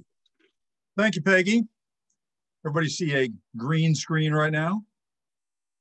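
An elderly man speaks calmly over an online call.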